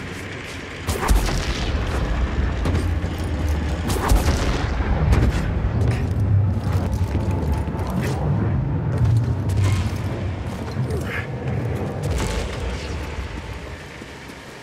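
A huge stone gear rumbles and grinds as it turns.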